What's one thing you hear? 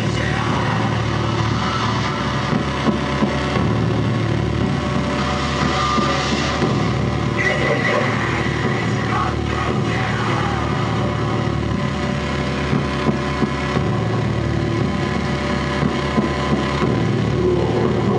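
Loud electronic music with a pounding beat plays throughout.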